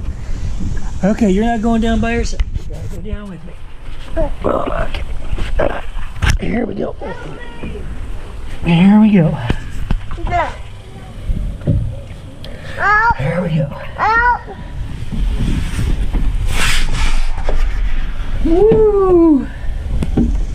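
A small child squeals and babbles close by.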